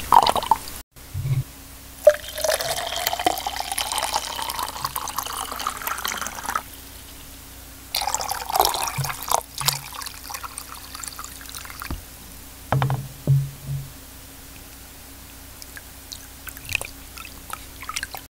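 Water laps and splashes gently against rock, echoing in a cave.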